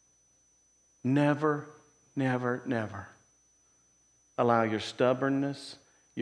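A middle-aged man speaks through a microphone with pauses, in an echoing room.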